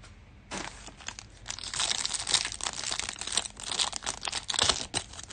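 Foil card packs crinkle and rip.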